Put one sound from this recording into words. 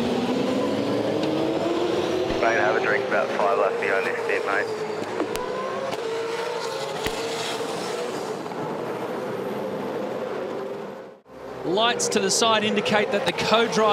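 Racing car engines roar loudly as the cars speed along the track.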